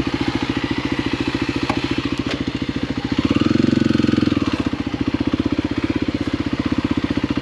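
A dirt bike engine putters close by, revving up briefly.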